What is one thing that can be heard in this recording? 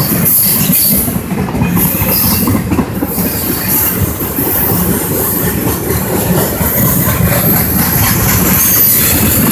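Steel wheels squeal and screech on the rails.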